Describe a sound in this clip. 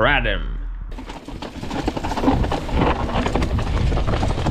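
Bicycle tyres rattle and crunch over a bumpy dirt trail.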